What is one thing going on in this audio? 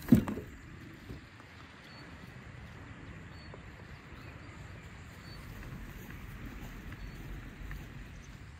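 A wheelbarrow rolls over grass.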